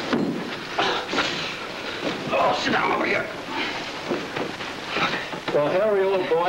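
A man talks with animation, heard through a thin, hissy old recording.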